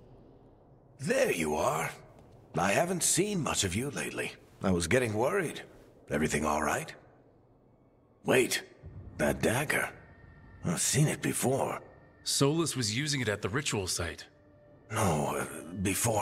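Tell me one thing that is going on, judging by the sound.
A man speaks warmly, then with surprise.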